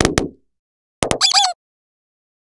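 A rubber chicken squeaks.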